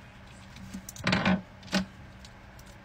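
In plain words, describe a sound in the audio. Hard plastic clicks and snaps in hands.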